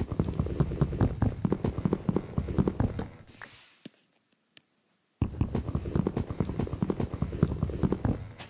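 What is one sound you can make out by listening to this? Rapid, hollow knocking taps sound as wood is chopped.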